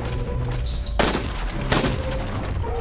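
A rifle fires two loud shots.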